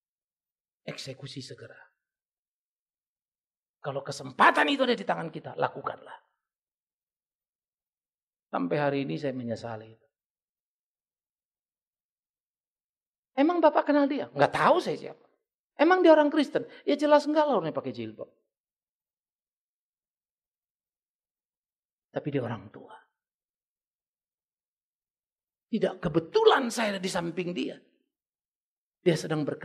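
An older man speaks with emphasis through a microphone, pausing between phrases.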